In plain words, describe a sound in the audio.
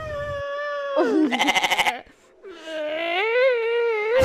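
A young woman laughs softly close by.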